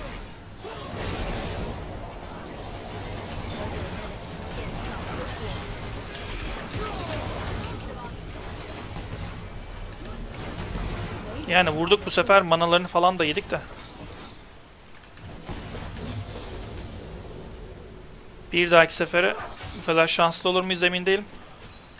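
Spell blasts and clashing effects from a video game play throughout.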